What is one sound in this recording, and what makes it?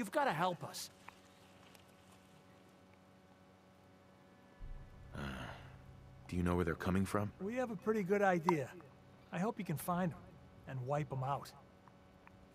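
A man speaks calmly and pleadingly, close by.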